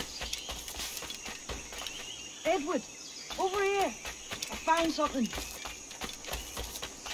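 Footsteps tread steadily on a dirt path.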